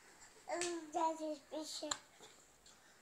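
A young child talks loudly and excitedly close by.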